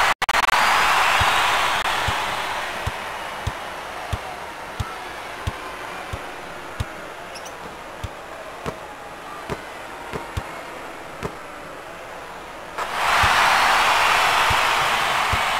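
A crowd cheers loudly, fades, then swells again.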